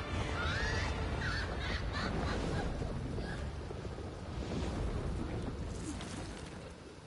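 A deep fiery rumble roars.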